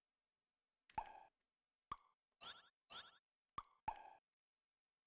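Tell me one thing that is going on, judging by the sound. Game menus beep and chime.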